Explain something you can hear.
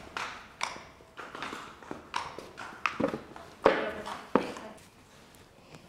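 A pony's hooves clop on a concrete floor.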